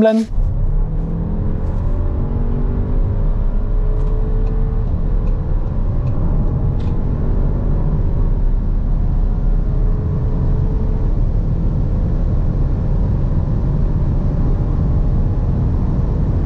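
Wind and tyre noise rush loudly inside a fast-moving car.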